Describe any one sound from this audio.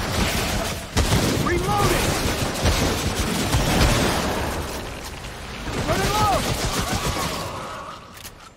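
Gunshots fire rapidly and loudly.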